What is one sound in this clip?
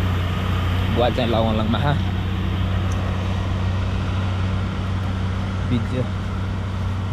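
A young man talks close by, in short calm phrases.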